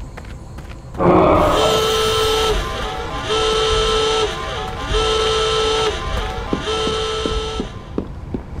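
An alarm blares in four long pulses.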